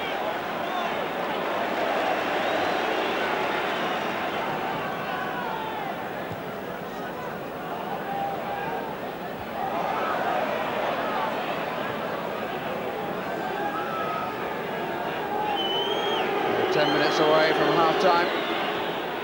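A large stadium crowd chants and sings.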